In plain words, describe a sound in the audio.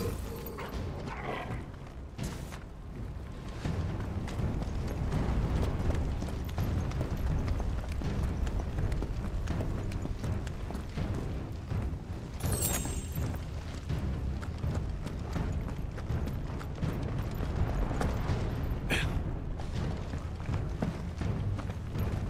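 Footsteps thud on stone.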